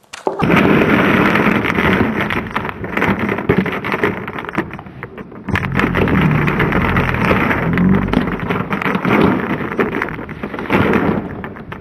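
Glass marbles rattle and clatter inside a plastic tub as it is shaken.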